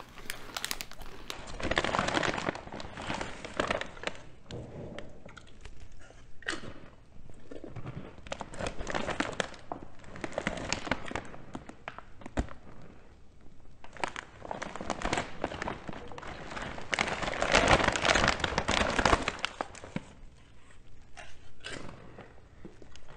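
A snack bag crinkles and rustles.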